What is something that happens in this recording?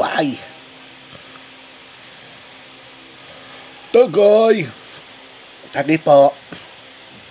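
A young man speaks briefly and playfully, close by.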